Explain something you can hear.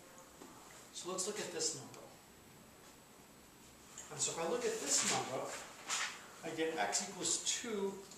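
A man speaks calmly nearby, as if lecturing.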